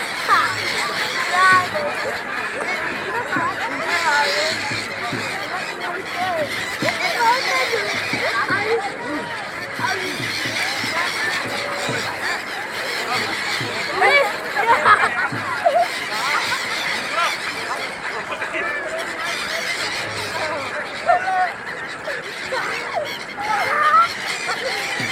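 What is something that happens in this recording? Many gulls cry and squawk loudly overhead.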